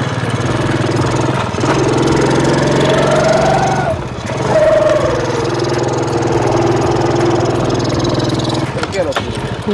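A motorcycle engine idles and revs nearby.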